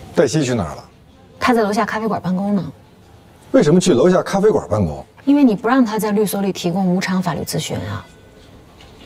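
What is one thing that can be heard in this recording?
A woman asks questions in a clear, calm voice.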